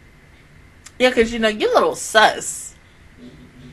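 A young woman speaks loudly and with animation into a close microphone.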